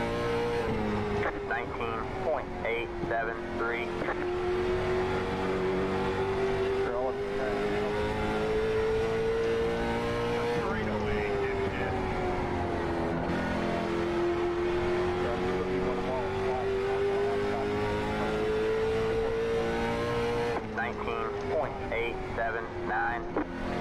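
A race car engine drones steadily, rising and falling in pitch as it laps.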